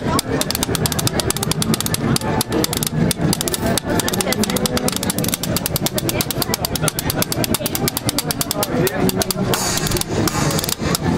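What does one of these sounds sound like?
A street band plays lively jazz outdoors.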